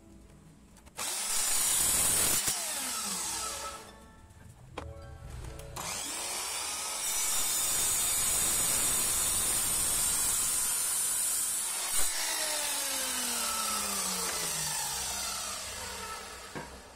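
A power saw whines loudly as its blade cuts through wood.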